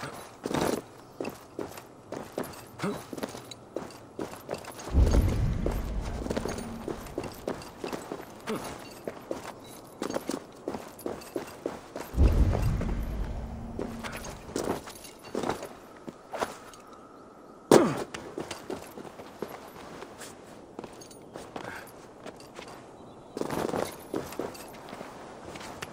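A climber's hands and feet scrape and scuff on rock, over and over.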